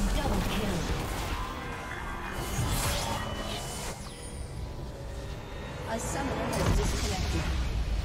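Game spells and attacks crash and clash in a busy fight.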